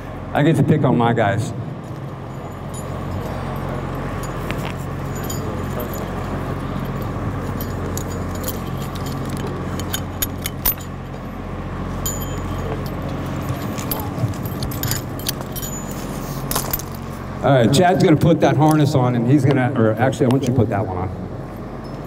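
A man speaks calmly through a microphone and loudspeaker outdoors.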